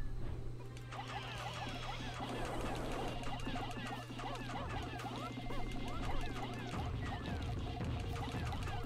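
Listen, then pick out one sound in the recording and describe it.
Many tiny creatures squeak and chatter in high, quick voices.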